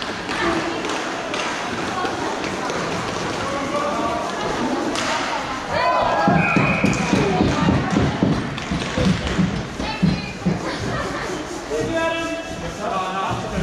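Wheels roll and scrape across a hard floor in a large echoing hall.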